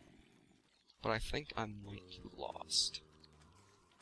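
A creature groans nearby.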